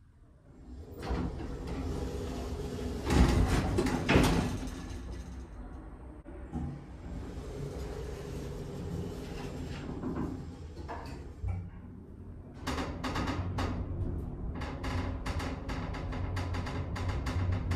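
A lift hums and rumbles as it moves down.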